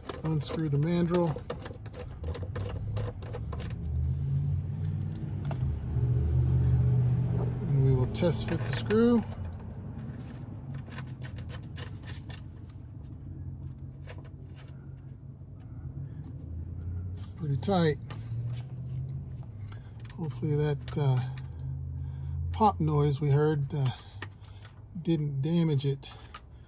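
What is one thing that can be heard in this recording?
Hard plastic parts click and rattle as they are handled.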